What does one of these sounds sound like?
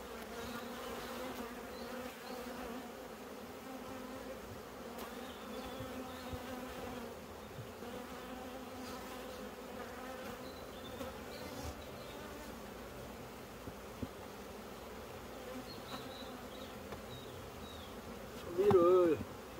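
Bees buzz steadily around the hives.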